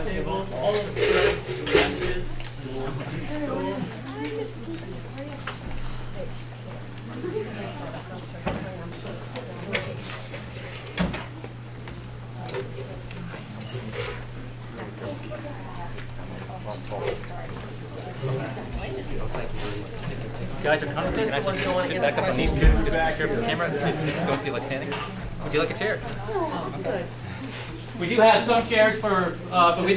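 Several men and women talk at once in a low murmur.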